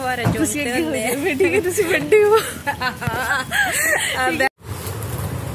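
A woman talks cheerfully close by, laughing.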